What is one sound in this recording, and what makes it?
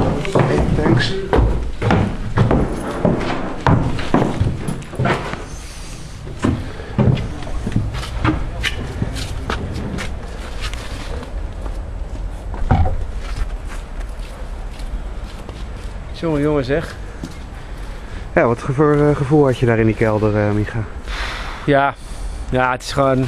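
A man talks close by, outdoors.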